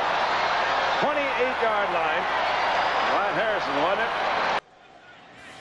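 A large crowd roars loudly.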